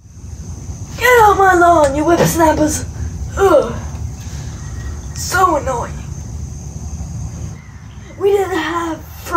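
A young boy calls out loudly nearby in short bursts.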